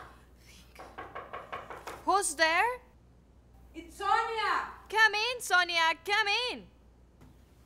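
A woman speaks tensely up close.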